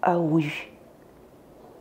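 A woman speaks calmly and close.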